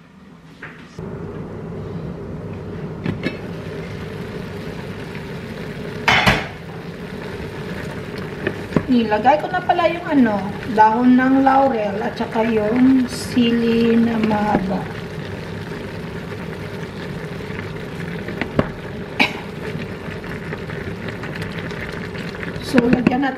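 Food sizzles and simmers in a pot.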